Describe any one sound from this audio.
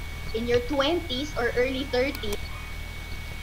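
A woman speaks with animation over an online call.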